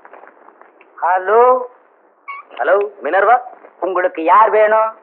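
A middle-aged man speaks loudly and with animation into a telephone.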